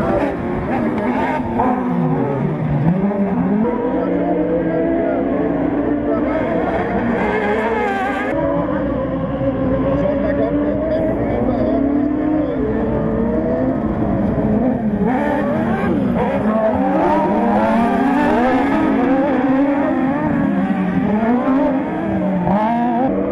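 Racing buggy engines roar and rev loudly as they speed over a dirt track.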